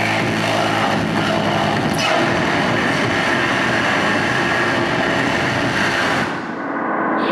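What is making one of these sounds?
A man makes harsh, distorted vocal noise into a microphone through loud speakers.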